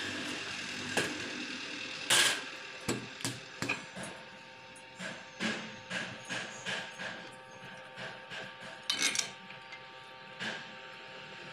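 Metal parts clank and knock against each other.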